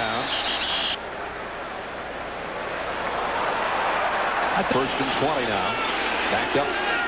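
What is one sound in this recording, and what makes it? A large crowd roars steadily in a big stadium.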